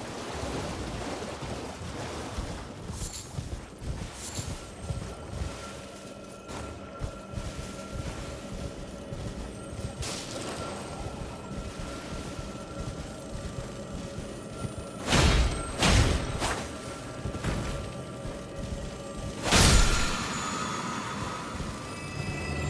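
Hooves thud on soft ground at a gallop.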